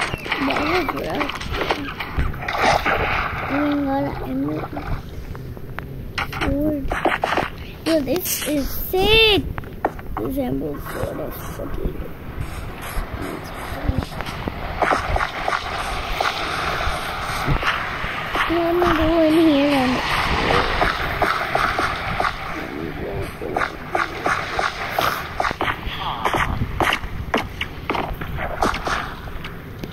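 Footsteps crunch steadily over grass and stone.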